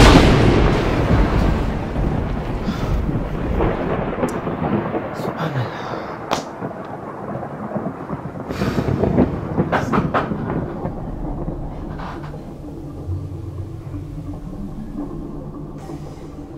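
A young man sobs and moans close by.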